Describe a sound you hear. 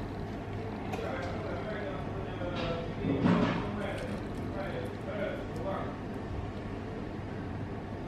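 Liquid pours and splashes into a glass.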